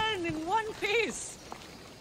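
A horse's hooves clop on stone.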